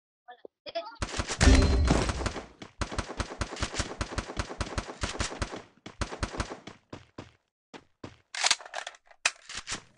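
A rifle fires in rapid bursts of sharp, loud shots.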